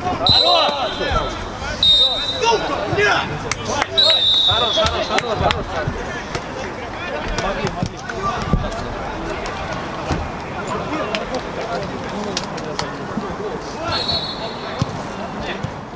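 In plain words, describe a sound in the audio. A referee's whistle blows in short, sharp blasts outdoors.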